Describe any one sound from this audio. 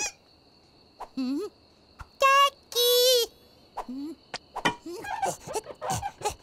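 A small cartoon chick squeaks and chirps in high, sliding cries.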